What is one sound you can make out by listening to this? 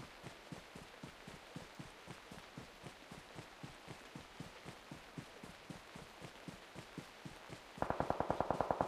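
Footsteps thud quickly and evenly through grass.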